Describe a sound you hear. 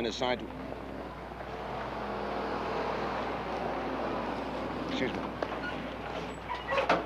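A truck engine rumbles as it drives past.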